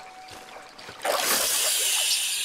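A fishing line whizzes out as a rod is cast.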